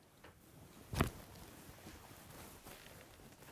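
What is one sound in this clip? A man makes a quiet shushing sound close by.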